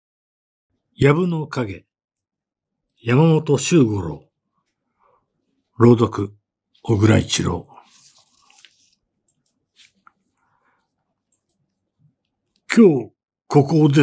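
An elderly man reads aloud calmly into a microphone, in short phrases with pauses.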